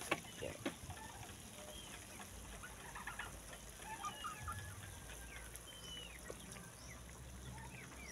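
Sauce pours from a bottle into a sizzling pan.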